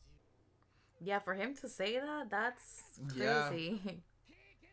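A young woman talks close to a microphone.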